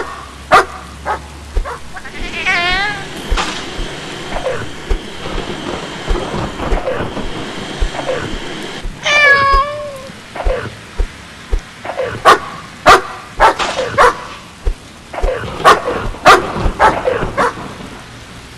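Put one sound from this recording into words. A dog barks and growls in a fight.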